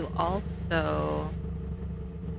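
A young woman makes a short, rising vocal sound close to a microphone.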